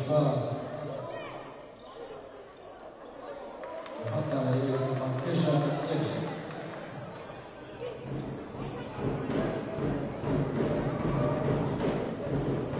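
A basketball bounces on a hard wooden court.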